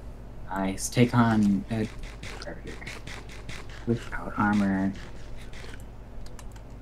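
Crunchy chewing sounds repeat quickly, like a carrot being eaten.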